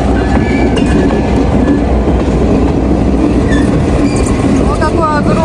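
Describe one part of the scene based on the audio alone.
A train rumbles past close by, wheels clattering on the rails.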